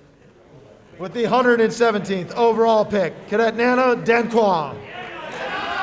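A group of young men shout and cheer together loudly.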